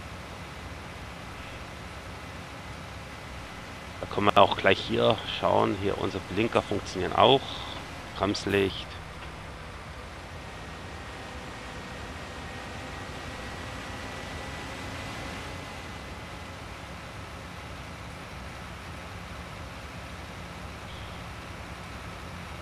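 A tractor engine hums steadily as it drives along.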